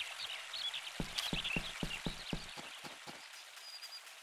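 Footsteps run quickly across wooden boards and grass.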